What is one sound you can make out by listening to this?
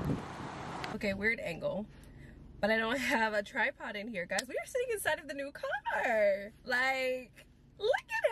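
A young woman talks excitedly and close up.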